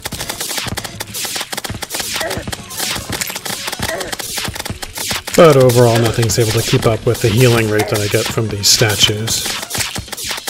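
Rapid video game laser shots zap over and over.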